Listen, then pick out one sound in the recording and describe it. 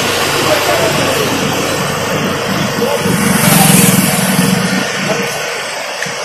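A motorbike engine passes by on a street.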